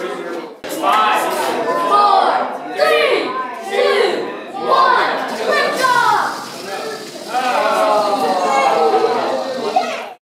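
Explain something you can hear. Children shout and chatter excitedly close by in a room.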